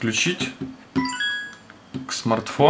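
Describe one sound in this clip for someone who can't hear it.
A phone plays a short electronic chime.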